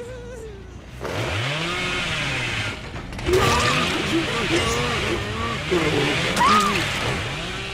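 A chainsaw revs loudly in bursts.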